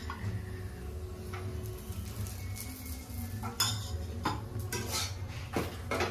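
A metal pan clatters on a gas stove.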